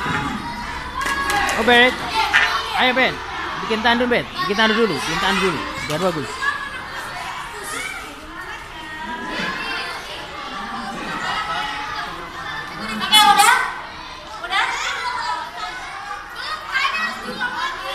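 Several children talk and call out nearby.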